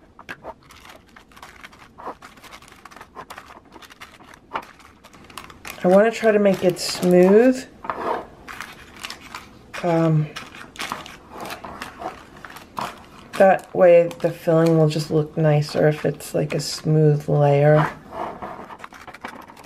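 Baking paper crinkles and rustles as hands press it.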